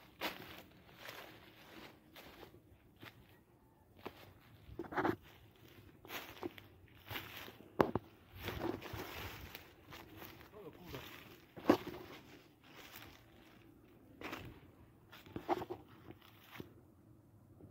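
Dry leaves and brush rustle and crunch underfoot close by.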